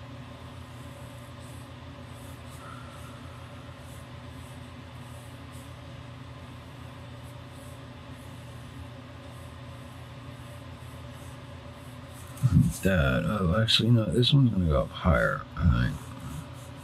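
A ballpoint pen scratches softly across paper.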